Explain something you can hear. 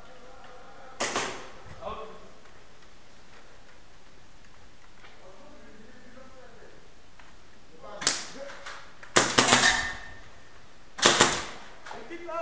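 Airsoft guns fire sharp bursts of shots at close range.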